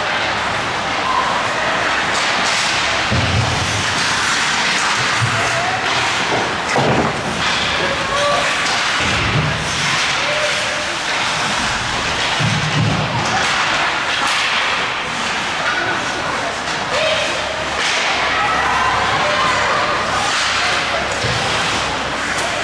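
Skates scrape and hiss across the ice in an echoing rink.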